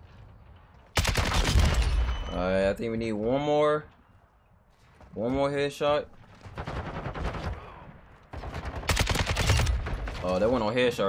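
Rapid gunfire bursts out in loud volleys.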